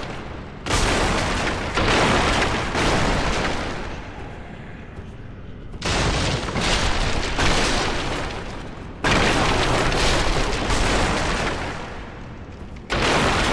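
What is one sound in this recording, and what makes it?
Wooden debris crashes and clatters as it is smashed.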